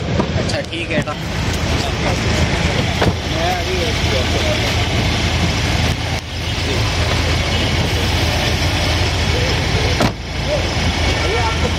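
An engine idles nearby.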